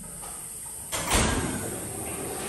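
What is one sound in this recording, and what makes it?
A door thuds shut.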